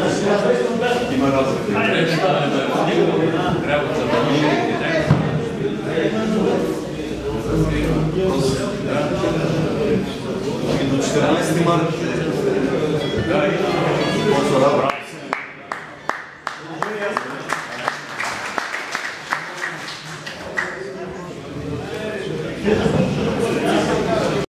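Several men talk over each other.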